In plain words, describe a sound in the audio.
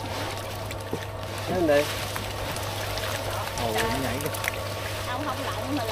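Water splashes and trickles over plastic sheeting.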